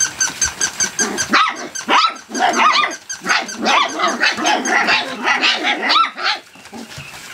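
Puppies yip and whine excitedly.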